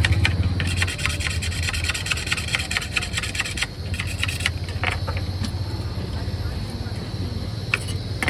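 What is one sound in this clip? Cheese is grated quickly, with a rapid scraping sound.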